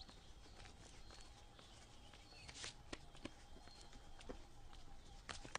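Footsteps crunch on a paved road.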